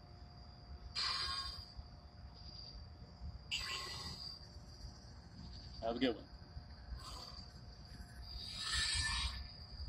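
A sword swishes through the air in quick bursts.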